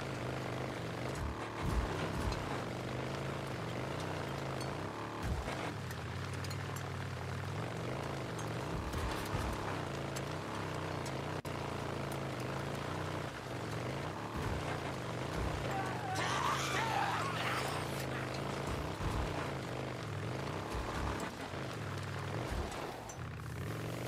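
A motorbike engine drones steadily, revving up and down.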